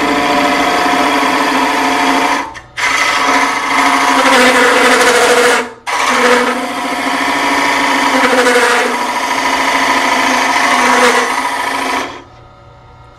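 A chisel scrapes loudly against wood spinning on a lathe.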